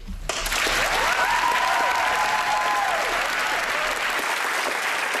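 Young people in a crowd cheer and whoop.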